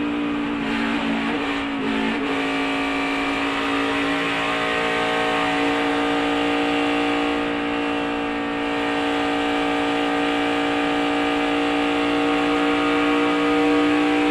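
Wind rushes past a fast-moving car.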